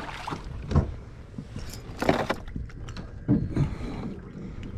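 Hands knock and clunk against a plastic kayak.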